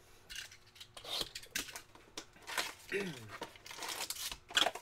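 A cardboard box rustles and clicks as hands open it.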